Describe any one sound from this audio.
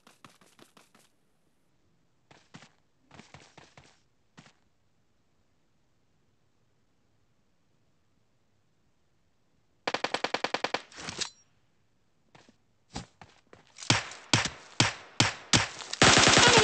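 Automatic gunfire rattles in quick bursts, some distant and some close and loud.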